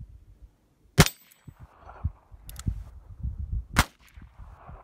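Gunshots crack loudly outdoors, one at a time.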